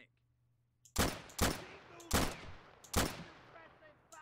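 Rifle shots crack one after another, ringing out briefly.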